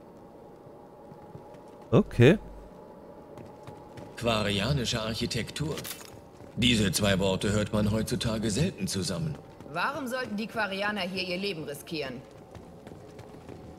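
Heavy armoured footsteps thud on a hard floor.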